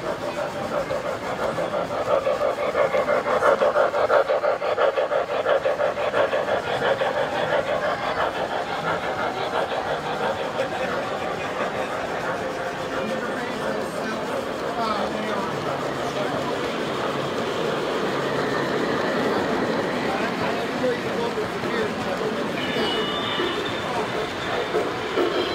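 A model train rumbles and clicks steadily along its tracks close by.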